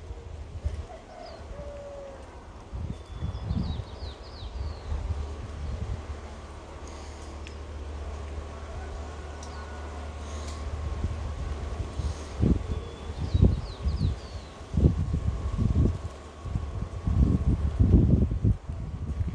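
Wind gusts and rumbles across the microphone outdoors.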